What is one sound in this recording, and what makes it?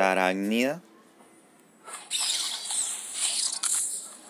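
A card game chimes and whooshes as cards are played.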